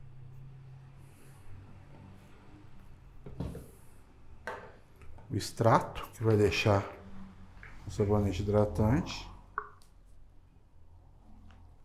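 Liquid pours into a small plastic cup.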